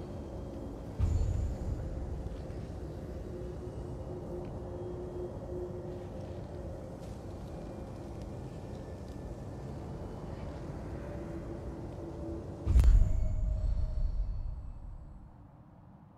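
A deep whooshing boom sounds as a menu changes.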